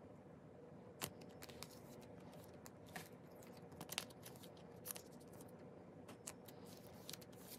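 A stiff card taps and clicks against plastic.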